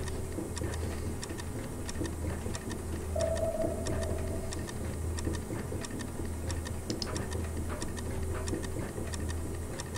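Light footsteps tap on a hard floor.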